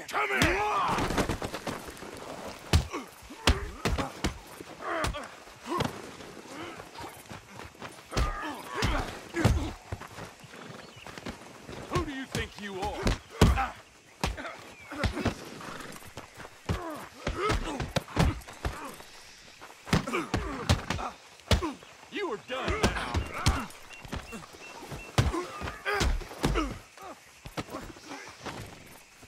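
Fists thud heavily against bodies in a brawl.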